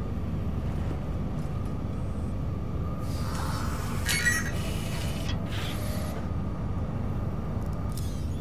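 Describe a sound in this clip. A low, steady mechanical hum drones throughout.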